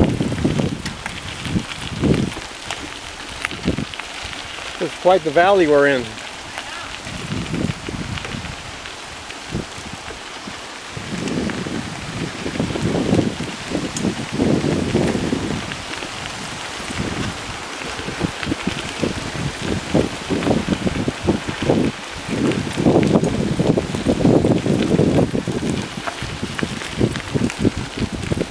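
Bicycle tyres crunch over a gravel path.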